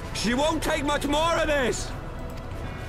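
A man speaks with surprise, close by.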